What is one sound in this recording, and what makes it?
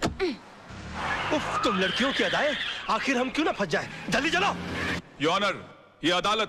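Tyres screech as a car swerves on pavement.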